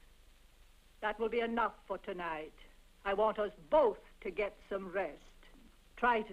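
An elderly woman speaks with animation, close by.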